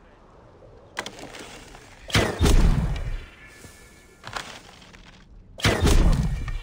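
A bowstring snaps as arrows are loosed.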